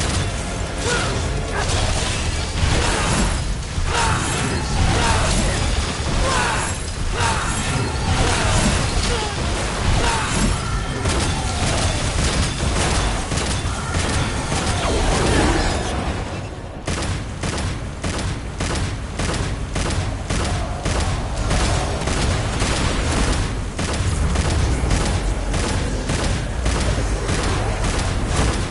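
Sword slashes and magic blasts crash in a loud, fast fight.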